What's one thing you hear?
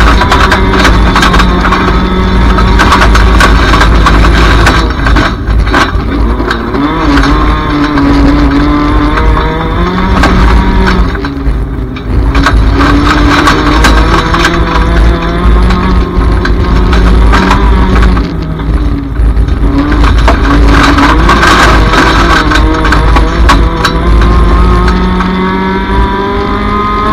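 A car body rattles and clanks over bumps.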